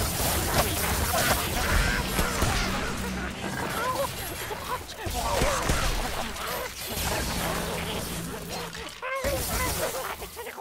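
Magic spells crackle and zap in quick bursts.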